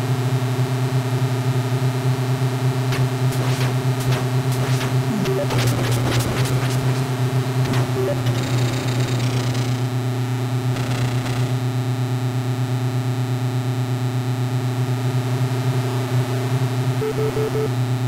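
A game tank's engine buzzes steadily in a low drone.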